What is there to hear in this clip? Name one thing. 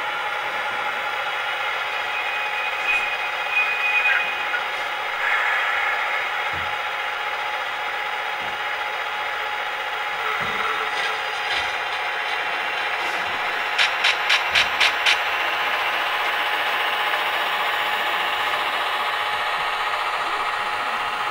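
A model diesel locomotive hums with a steady engine drone.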